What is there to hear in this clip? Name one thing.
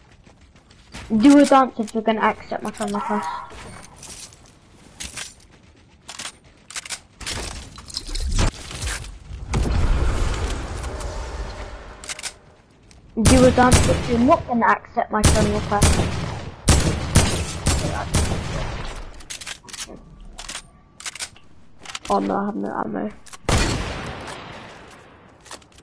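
Gunshots fire in quick bursts in a video game.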